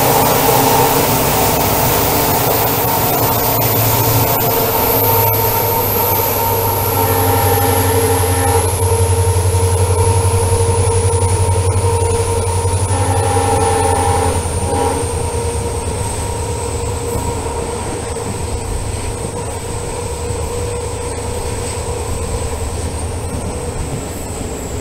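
Train wheels clatter rhythmically over the rails.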